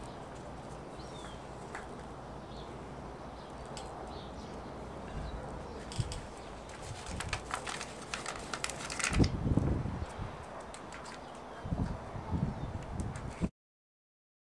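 Hands rustle and press soil into a pot.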